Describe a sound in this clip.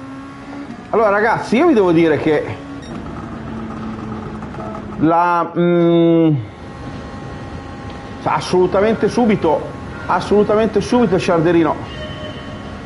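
A young man speaks with animation through a microphone, close by.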